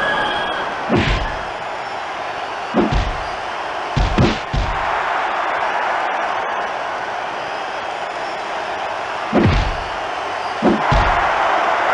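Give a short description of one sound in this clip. Heavy blows land with dull thuds.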